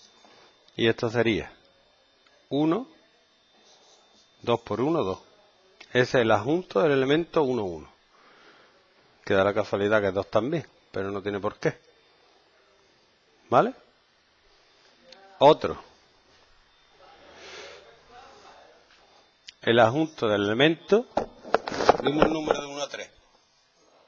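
A man speaks calmly and steadily.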